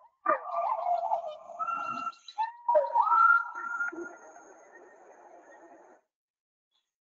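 Gibbons whoop and hoot loudly in rising calls, heard through an online call.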